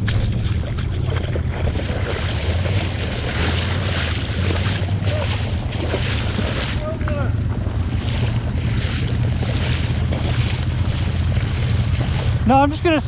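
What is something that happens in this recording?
Water splashes under tyres driving through puddles.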